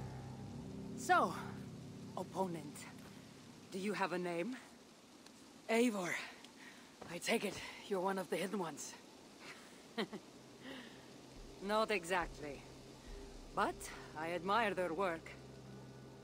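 A woman speaks calmly and confidently, close by.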